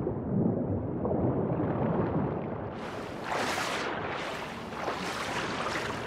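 Water splashes as a swimmer surfaces.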